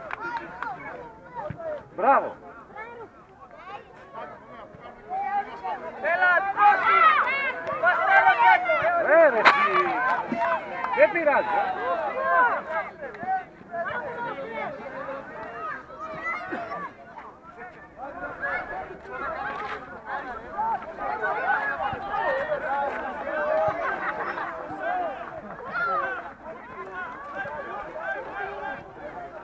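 Children shout and call out across an open playing field.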